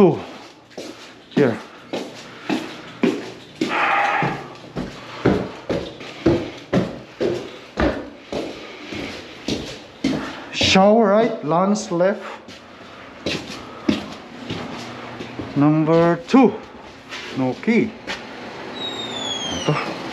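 Footsteps walk briskly on a hard floor.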